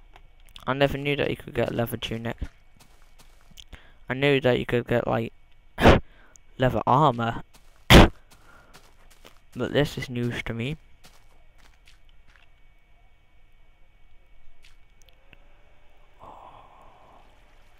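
Footsteps pad softly on grass.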